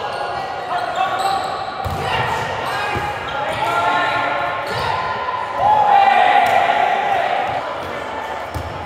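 Several young men call out to each other in a large echoing gym.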